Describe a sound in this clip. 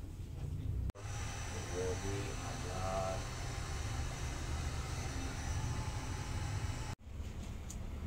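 A heat gun blows with a steady rushing hiss.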